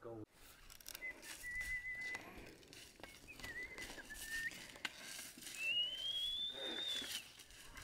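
A man whistles to oxen in short and rising notes.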